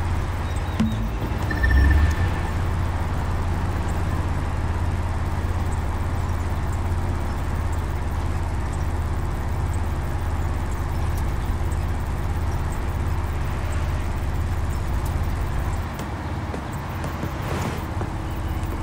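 Tyres roar on asphalt.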